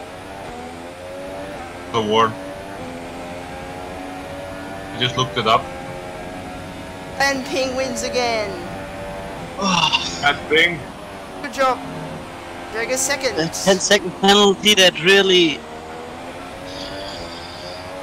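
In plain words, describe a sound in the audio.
A racing car engine whines at high revs, rising and falling with gear changes.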